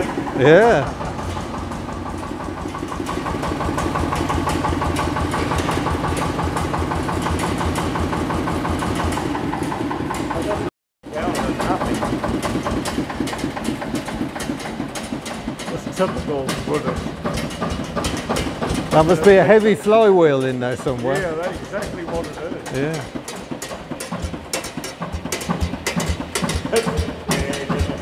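A tractor engine idles with a steady rapid chugging.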